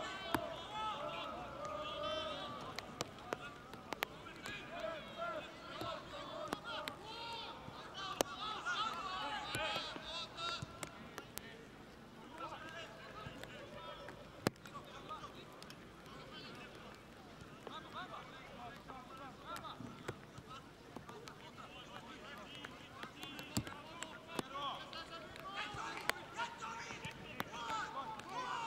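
Players thud a football with their kicks.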